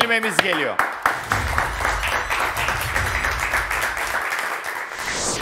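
An audience claps and applauds.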